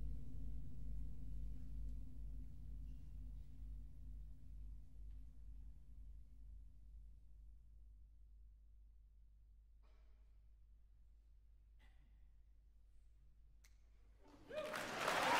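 A deep orchestral note rings on and slowly fades away in a large hall.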